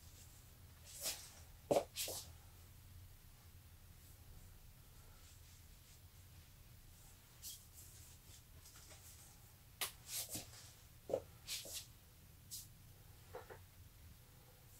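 Fabric rustles as a man handles and turns in a jersey.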